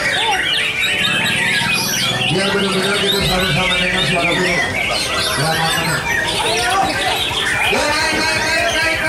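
A songbird sings a loud, rapid, varied song of chirps and trills close by.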